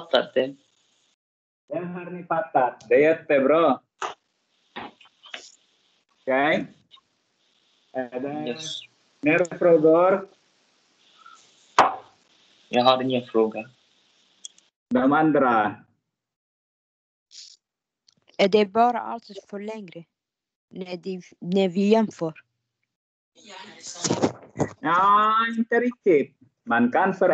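A young man speaks calmly over an online call, with short pauses.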